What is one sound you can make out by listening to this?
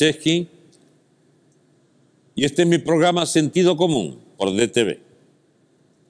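An elderly man speaks calmly and expressively into a close microphone, with pauses.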